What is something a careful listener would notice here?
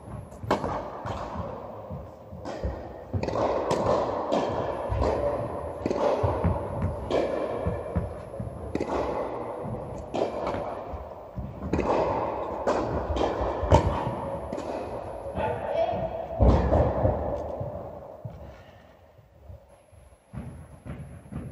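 A tennis ball is struck back and forth by rackets, each hit echoing through a large hall.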